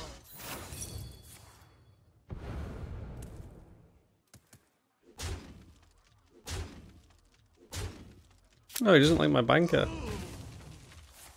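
Video game sound effects thud and crash in bursts.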